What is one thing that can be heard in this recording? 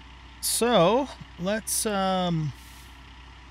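A young woman speaks with animation into a close microphone, drawing out her words.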